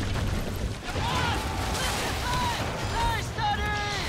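Cannons boom loudly.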